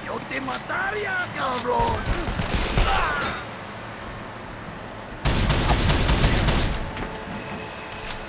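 A gun magazine clicks as it is reloaded.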